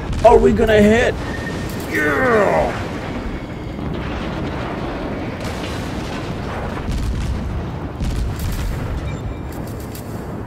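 Heavy naval guns boom in deep blasts.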